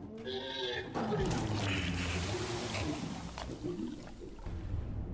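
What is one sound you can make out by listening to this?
A magical spell bursts with a loud whooshing blast.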